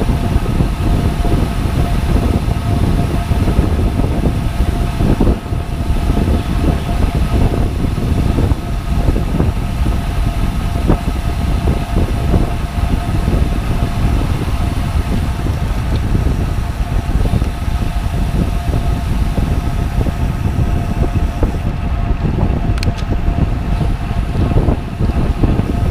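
Wind rushes and buffets loudly past a moving bicycle.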